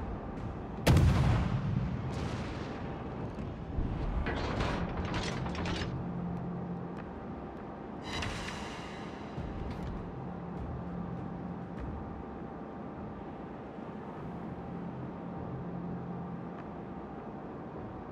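Waves splash against a ship's hull.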